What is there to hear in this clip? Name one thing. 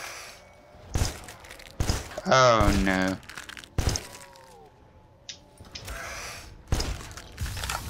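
A gun fires sharp single shots.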